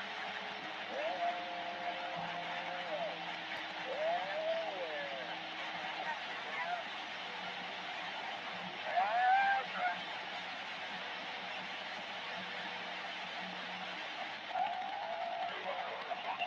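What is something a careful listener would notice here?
Warbling, wavering whistles come through the radio static now and then.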